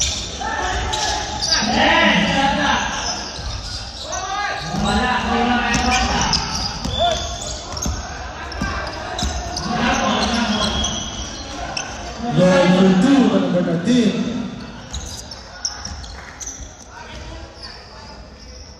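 A basketball thumps on a hard floor.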